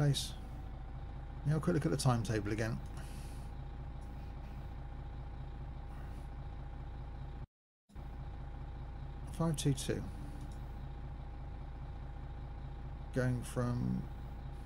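A bus engine idles with a low, steady hum.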